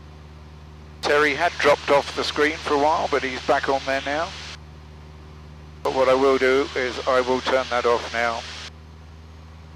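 An elderly man speaks calmly through a headset microphone.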